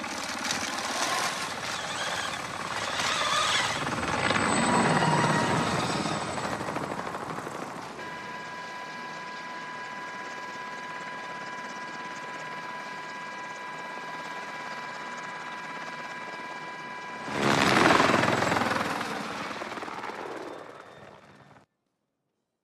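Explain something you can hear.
A helicopter's rotors thump and roar loudly.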